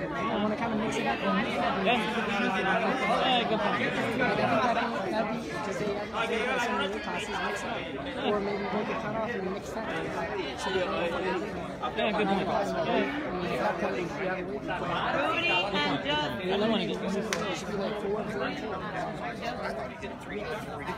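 A crowd of men and women chatters steadily in a large echoing hall.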